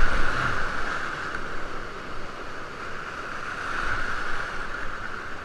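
River rapids rush and roar loudly close by.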